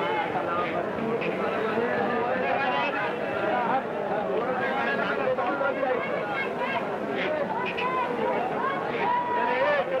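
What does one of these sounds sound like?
Many men chatter loudly outdoors.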